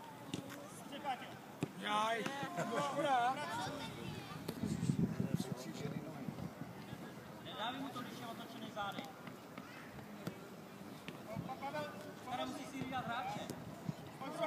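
Children shout and call out across an open playing field.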